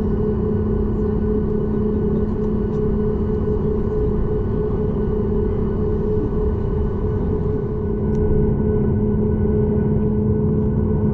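Jet engines hum and whine steadily, heard from inside an airliner cabin.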